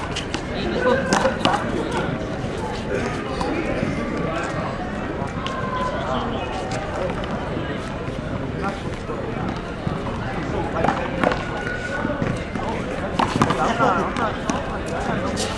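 Young men call out and talk to each other outdoors.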